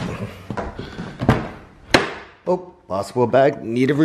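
A car door latch clicks and the door opens.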